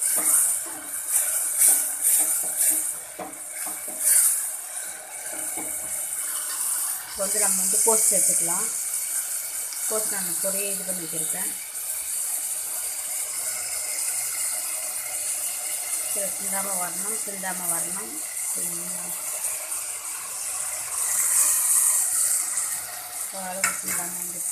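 Food sizzles and fries in a pot.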